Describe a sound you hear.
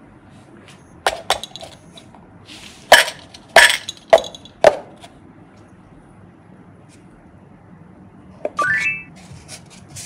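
A paper cup taps and scrapes against metal lids.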